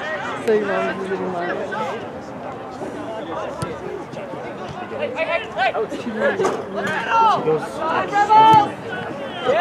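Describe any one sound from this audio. A soccer ball is kicked with a dull thump.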